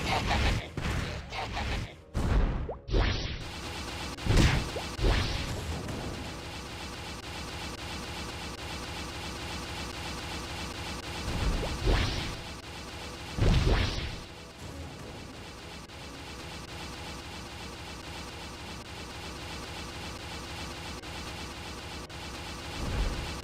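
Fiery game attacks burst with loud whooshing blasts.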